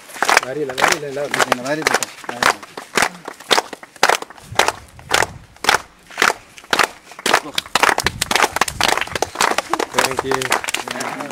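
A group of people sings together.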